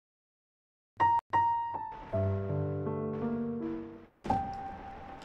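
A short bright musical jingle plays.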